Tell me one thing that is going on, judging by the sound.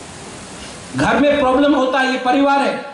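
A man speaks with animation into a microphone, heard through a loudspeaker in an echoing hall.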